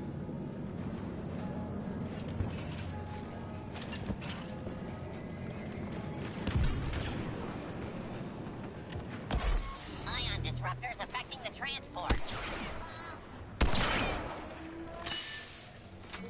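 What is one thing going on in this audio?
Laser guns fire in sharp, quick bursts.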